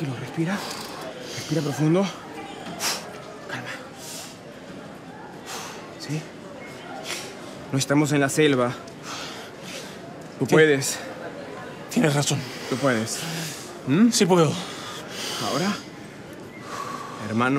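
A second man answers in a tense, pleading voice.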